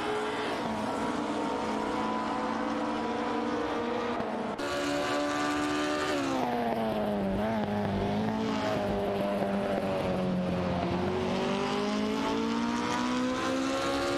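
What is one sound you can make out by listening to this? A racing car engine roars, its pitch rising and falling with gear changes.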